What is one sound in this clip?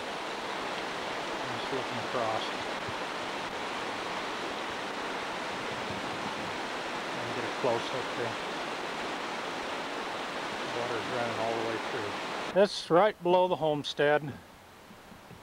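Floodwater rushes and roars steadily.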